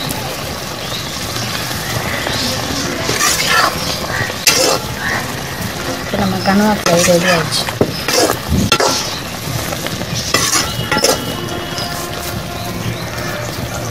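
A spatula scrapes and knocks against a metal pan.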